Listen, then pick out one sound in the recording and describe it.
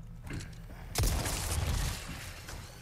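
A pistol fires a loud shot that echoes briefly.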